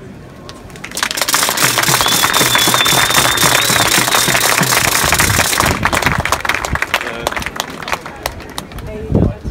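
A large crowd claps hands.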